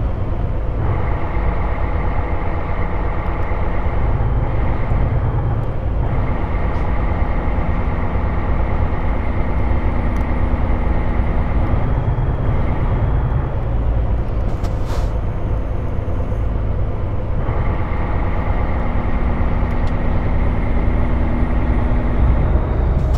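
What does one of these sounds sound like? A heavy truck engine drones steadily, its note shifting now and then.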